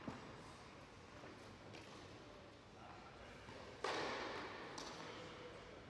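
A tennis ball bounces on a hard indoor court, echoing in a large hall.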